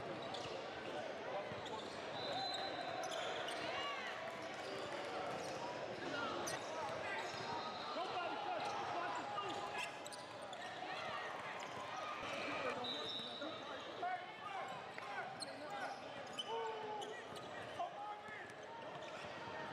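A crowd of spectators chatters and calls out in a large echoing gym.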